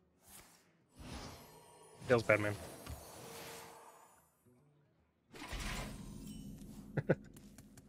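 Magical chimes and whooshes ring out from a card game.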